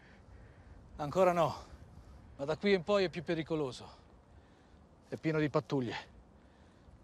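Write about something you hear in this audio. A middle-aged man speaks in a low, serious voice.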